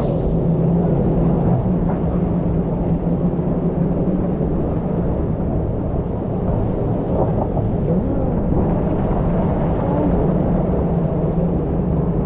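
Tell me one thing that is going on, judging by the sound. Water rushes down a slide.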